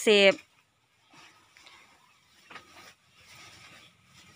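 A cow's hooves shuffle softly on straw and dirt.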